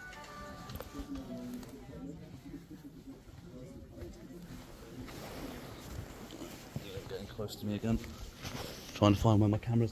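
Clothing rustles against a microphone.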